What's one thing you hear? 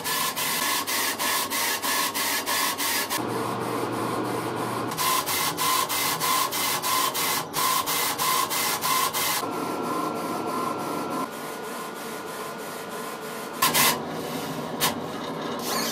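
A machine hums steadily.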